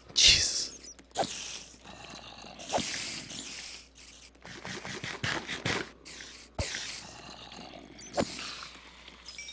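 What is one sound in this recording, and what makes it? A spider hisses and clicks.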